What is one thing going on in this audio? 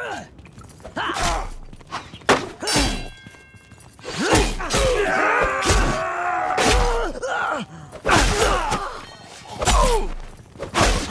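Metal weapons clash and strike in a close fight.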